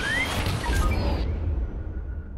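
Laser blasts and zaps burst loudly, then stop suddenly.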